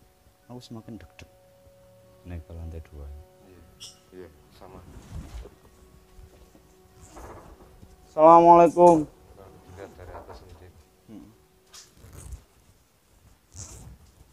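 Young men talk quietly close by.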